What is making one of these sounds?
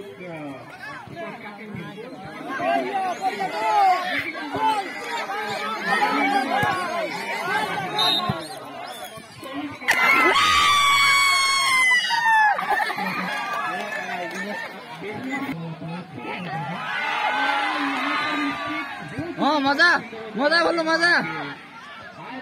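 A crowd of men and boys chatters and shouts outdoors.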